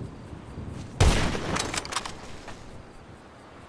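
A rifle fires a single loud shot that echoes outdoors.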